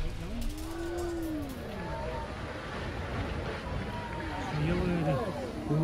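A tall brick chimney collapses with a deep, rumbling crash.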